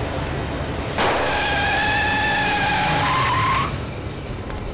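Tyres screech as a van swerves on pavement.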